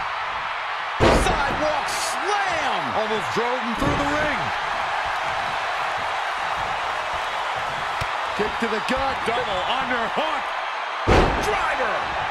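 A heavy body thuds onto a wrestling ring mat.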